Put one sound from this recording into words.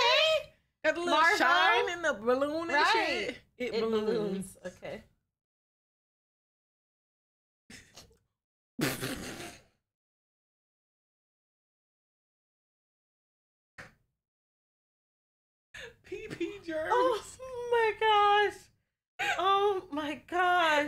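A young woman talks and exclaims with animation through a microphone.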